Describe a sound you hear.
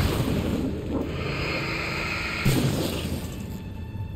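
Gunshots ring out with a short echo.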